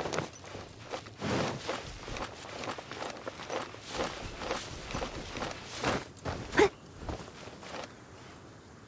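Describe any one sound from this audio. Footsteps run quickly through rustling grass.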